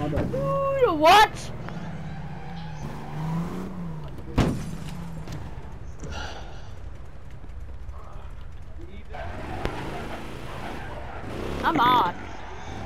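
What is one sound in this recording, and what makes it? A police siren whoops briefly.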